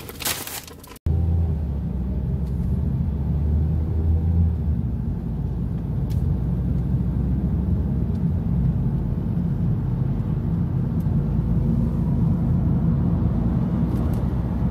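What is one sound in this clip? A car engine hums with road rumble while driving.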